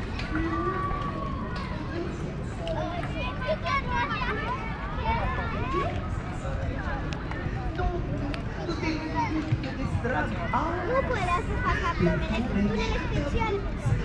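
A crowd of people chatter outdoors at a distance.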